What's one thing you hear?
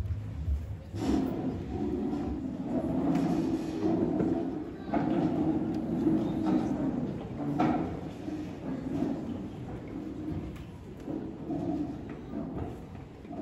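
A woman speaks through a loudspeaker, echoing in a large hall.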